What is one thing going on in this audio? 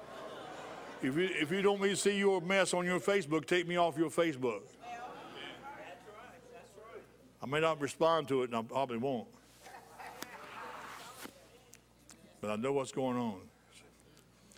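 An older man speaks slowly and with emotion through a microphone, with long pauses.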